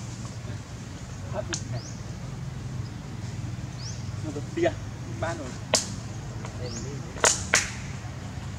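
Leaves rustle softly as a monkey shifts on a branch.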